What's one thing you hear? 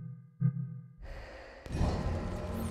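A low ambient rumble with hissing wind swells up.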